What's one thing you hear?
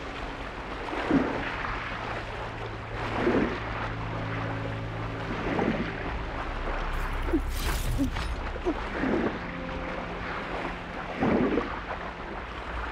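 Muffled underwater swimming strokes surge in a regular rhythm.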